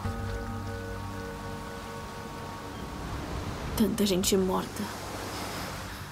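Small waves lap gently against a sandy shore.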